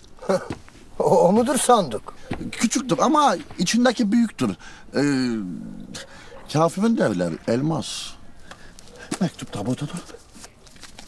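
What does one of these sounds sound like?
A man speaks loudly and with animation, as if performing.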